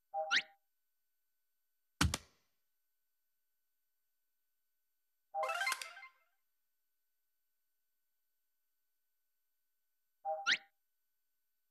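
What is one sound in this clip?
Short game interface sound effects chime and whoosh now and then.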